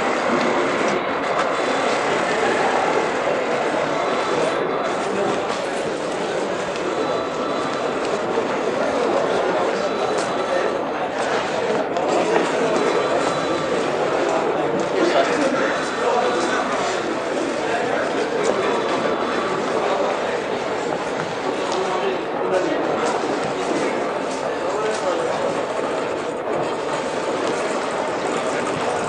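A crowd of men murmurs and talks in a large echoing hall.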